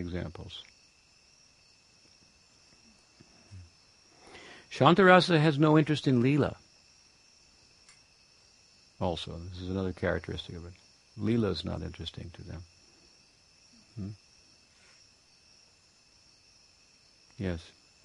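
An elderly man speaks calmly close by.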